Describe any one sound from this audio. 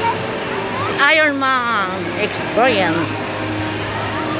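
A young girl speaks excitedly close by.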